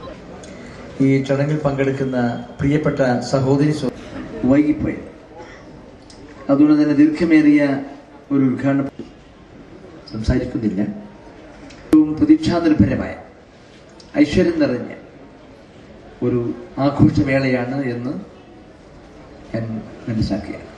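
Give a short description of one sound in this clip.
An elderly man speaks calmly into a microphone, heard through loudspeakers.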